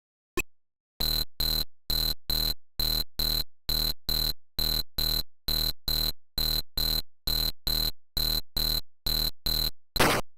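Retro computer game music plays in quick, evenly pulsed beeping notes.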